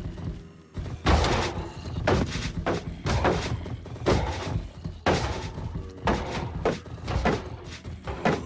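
Sword blows strike a creature in quick repeated hits.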